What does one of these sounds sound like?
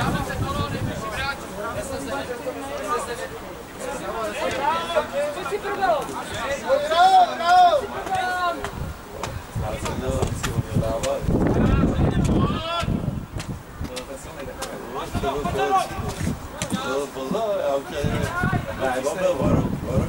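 Young women shout and call to each other outdoors across an open field.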